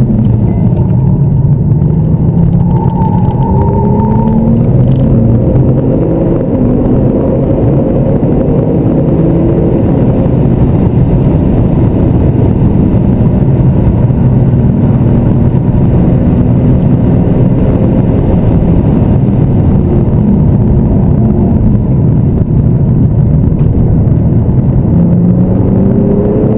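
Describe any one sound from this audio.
The twin-turbo flat-six of a Porsche 911 Turbo accelerates and shifts gears, heard from inside the cabin.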